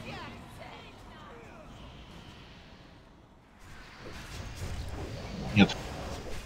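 Magic spells whoosh and crackle with bright chiming bursts.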